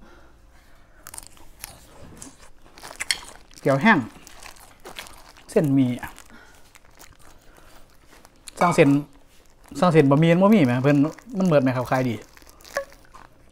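A plastic bag rustles and crinkles in a man's hands.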